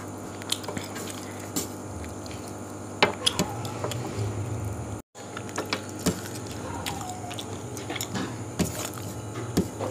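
A young man chews food noisily, close by.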